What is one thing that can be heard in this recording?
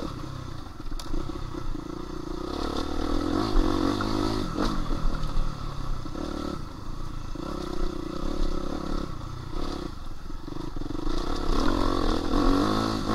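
A dirt bike engine revs and drones up close.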